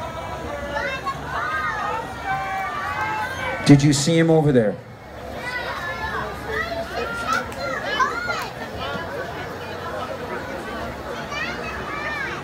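A second man sings along through another microphone and loudspeakers.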